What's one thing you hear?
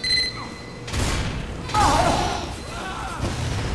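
Gunfire rattles nearby.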